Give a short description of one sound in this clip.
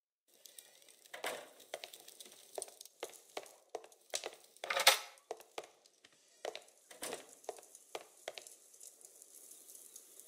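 Footsteps thud across a wooden floor indoors.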